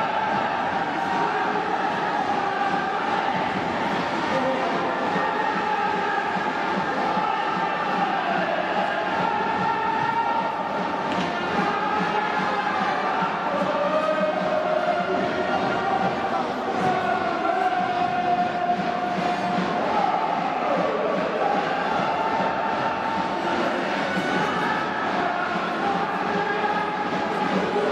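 A large crowd cheers and chants along.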